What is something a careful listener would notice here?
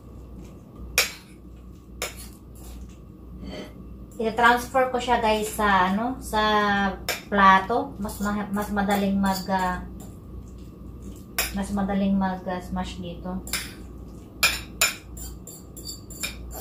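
Food scrapes and taps against a bowl.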